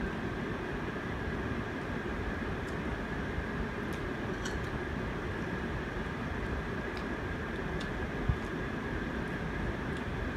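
A young woman chews food softly.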